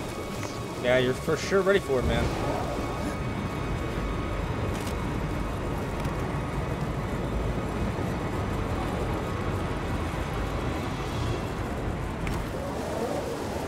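Hands and boots clank on metal bars during a climb.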